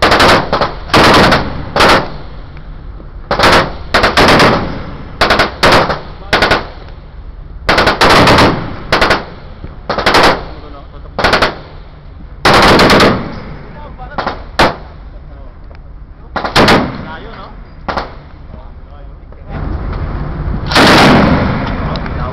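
A heavy machine gun fires loud bursts of shots outdoors.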